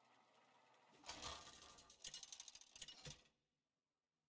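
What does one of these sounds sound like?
A loud metallic clatter and whoosh bursts out, then stops.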